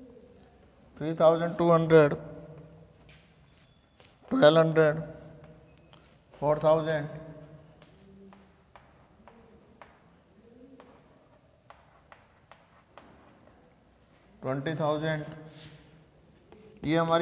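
A man speaks in short bursts, explaining calmly.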